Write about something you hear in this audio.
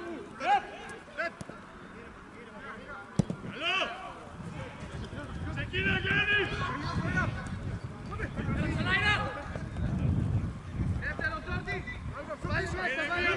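Men shout to each other outdoors, across an open field.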